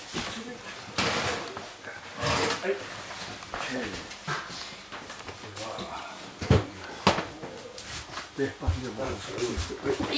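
A cloth sheet rustles as workers pull it across a table.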